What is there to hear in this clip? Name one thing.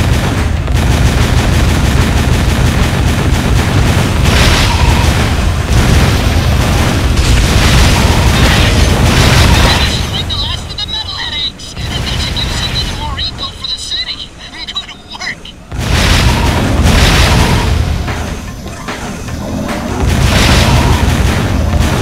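Laser guns fire rapid bursts of blasts.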